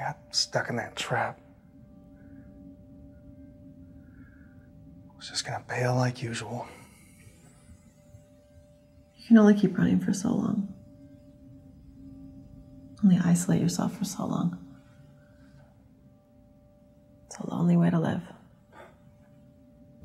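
A man speaks quietly and calmly nearby.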